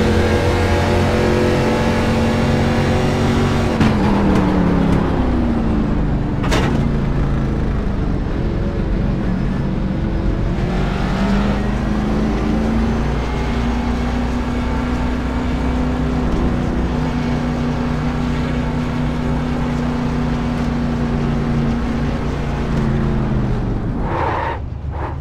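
A race car engine drones loudly, its pitch dropping as the car slows, then holding steady.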